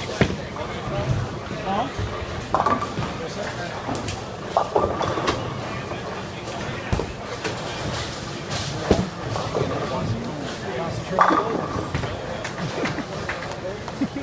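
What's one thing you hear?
A bowling ball rolls down a lane with a low rumble.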